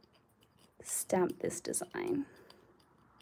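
A plastic card scrapes across a metal plate.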